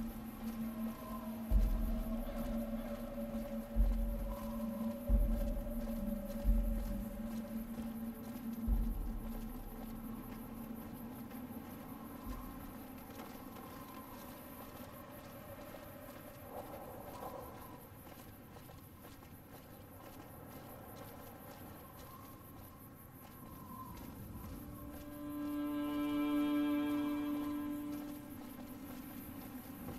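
Footsteps tread steadily on a rough road.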